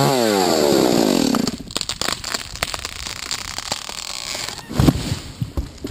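A tree crashes to the ground.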